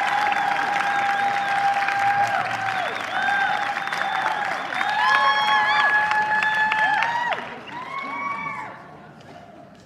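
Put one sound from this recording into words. A woman sings into a microphone on a stage, heard in a large hall.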